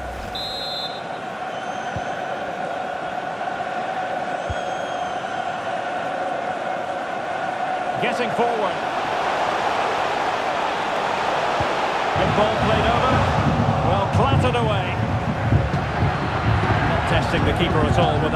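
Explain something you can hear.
A stadium crowd roars steadily and grows louder.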